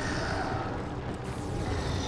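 A magic spell crackles and bursts.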